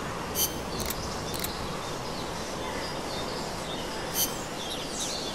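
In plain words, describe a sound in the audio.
Menu selection beeps click sharply.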